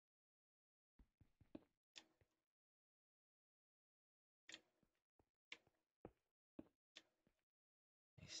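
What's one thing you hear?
A pickaxe chips at stone with short sharp knocks.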